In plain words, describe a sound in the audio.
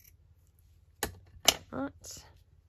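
Scissors clatter down onto a table.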